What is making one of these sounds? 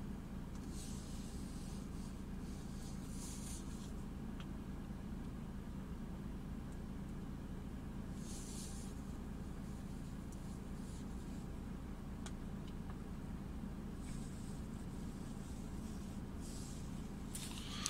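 A paper receipt rustles softly in a hand.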